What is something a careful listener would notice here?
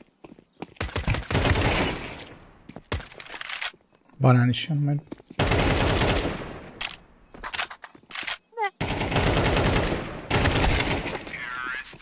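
Rapid gunfire bursts out loudly in several volleys.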